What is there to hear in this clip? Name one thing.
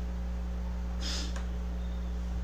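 A man sniffs close by.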